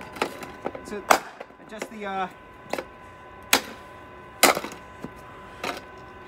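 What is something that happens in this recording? A metal scraper strikes and chips at ice on pavement in sharp knocks.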